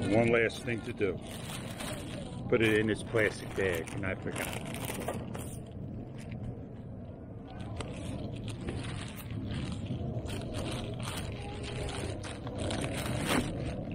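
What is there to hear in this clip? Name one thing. A plastic bag crinkles and rustles.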